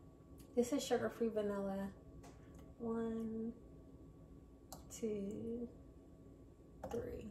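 Liquid pours from a bottle into a cup.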